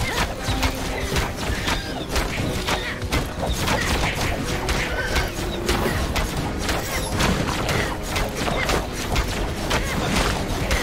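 Game attacks hit enemies with repeated sharp blasts and zaps.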